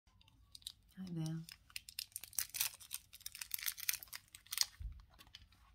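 Paper rustles and crinkles between fingers close to a microphone.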